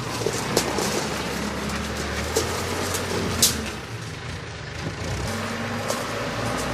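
Rubble and debris clatter and crunch in a loader bucket.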